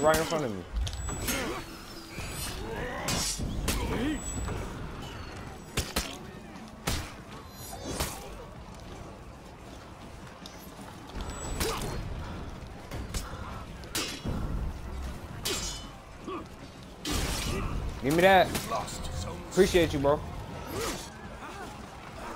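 Swords clash and strike armour in quick, sharp blows.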